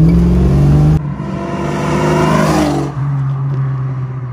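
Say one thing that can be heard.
A car drives past outdoors with a loud exhaust roar that rises and fades.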